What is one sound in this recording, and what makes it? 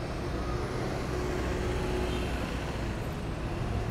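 A bus engine rumbles as the bus drives past close by.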